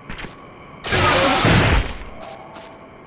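An electric whoosh bursts loudly and fades.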